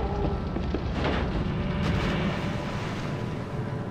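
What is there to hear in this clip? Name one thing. Water splashes heavily.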